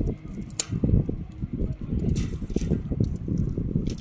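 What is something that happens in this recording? Pruning shears snip sharply at a branch.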